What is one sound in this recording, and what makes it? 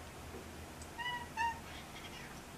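A cat chirps softly twice.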